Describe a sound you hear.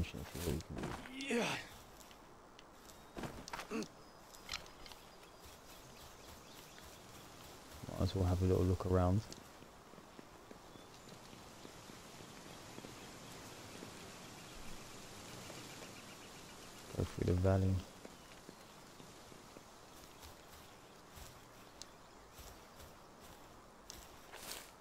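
Footsteps patter quickly on grass and rock.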